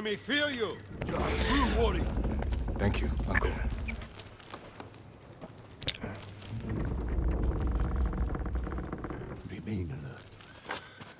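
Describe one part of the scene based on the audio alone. A heavy wooden gate rumbles and creaks open.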